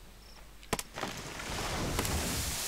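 A tree cracks and crashes to the ground.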